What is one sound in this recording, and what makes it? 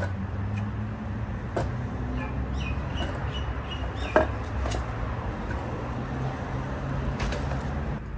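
Wooden logs knock together as they are stacked.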